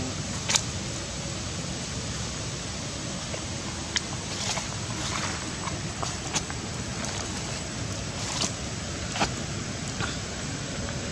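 Dry leaves rustle and crackle as a baby monkey shifts about on the ground.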